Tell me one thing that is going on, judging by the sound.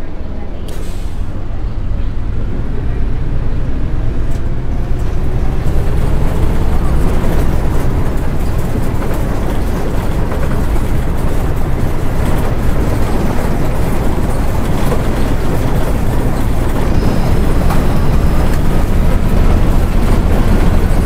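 A bus engine rumbles and rises in pitch as the bus pulls away and speeds up.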